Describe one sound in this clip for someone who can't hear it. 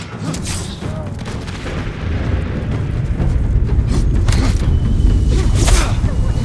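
Swords clash and slash sharply.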